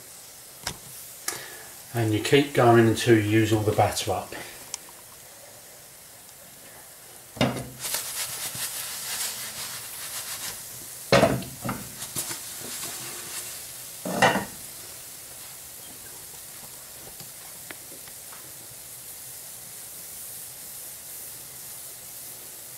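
A pancake sizzles softly in a frying pan.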